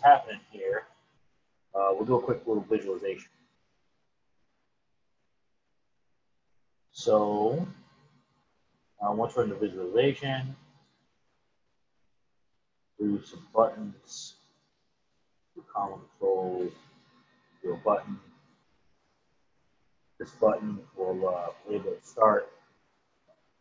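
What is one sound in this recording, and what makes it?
A man talks calmly into a close microphone, explaining in short phrases with pauses.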